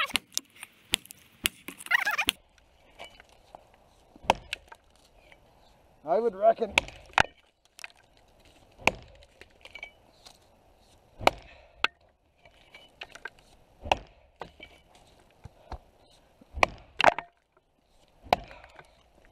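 An axe chops into a tree trunk with sharp, hollow thuds.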